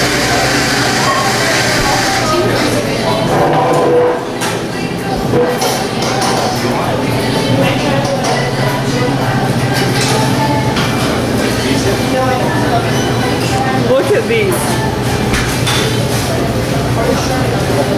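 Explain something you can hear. A refrigerated display case hums steadily.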